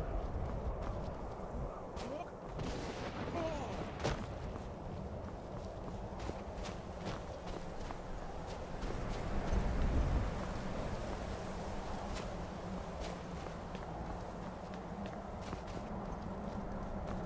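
Strong wind rushes steadily outdoors.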